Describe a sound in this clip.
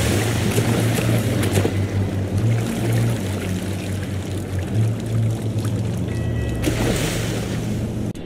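Water splashes as a swimmer strokes through a pool.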